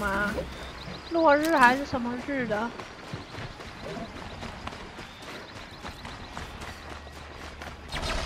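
Footsteps crunch through dry grass and dirt.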